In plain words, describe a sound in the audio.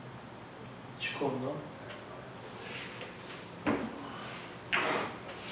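A man speaks a few short words close by.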